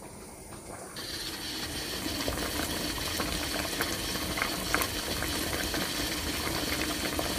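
Broth simmers and bubbles softly in a pot.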